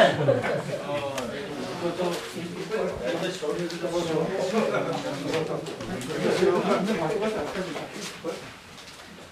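An elderly man speaks calmly and nearby.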